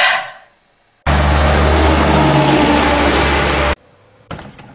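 A heavy truck roars past on a road close by.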